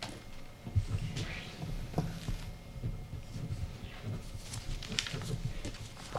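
Papers rustle and shuffle on a table.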